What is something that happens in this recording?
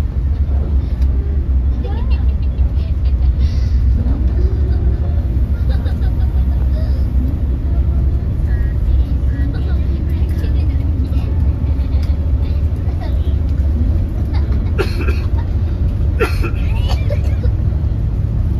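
Rain patters lightly on a window.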